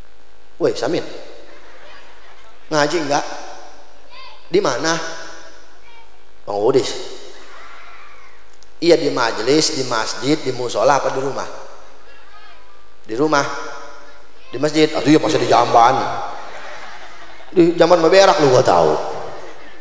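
A man speaks with animation in short bursts through a loudspeaker, echoing in a large space.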